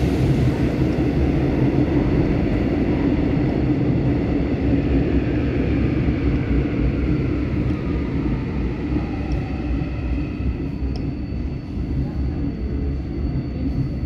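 Train motors whine, falling in pitch as the train slows.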